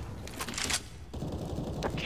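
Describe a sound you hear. A fire burns and crackles.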